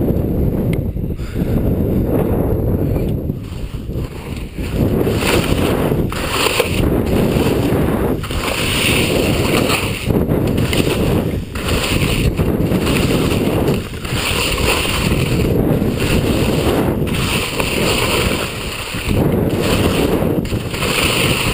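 Wind roars loudly past, outdoors.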